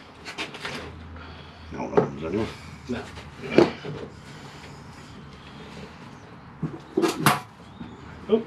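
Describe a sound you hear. Metal tools clink and tap against a tray.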